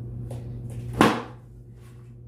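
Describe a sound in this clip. A bundle of cloth thumps onto the floor.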